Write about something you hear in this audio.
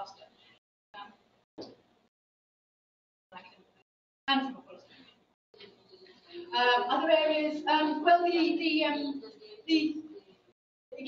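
A woman speaks into a microphone, pausing between phrases.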